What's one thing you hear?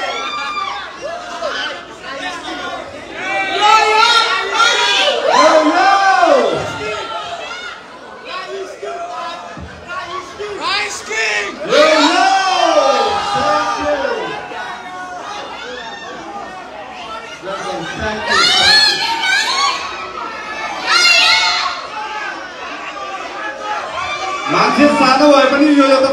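A large crowd cheers and screams excitedly in an echoing hall.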